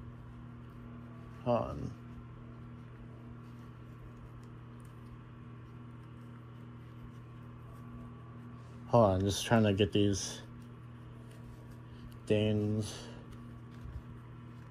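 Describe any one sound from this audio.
A loose knitted fabric rustles softly as it is moved about.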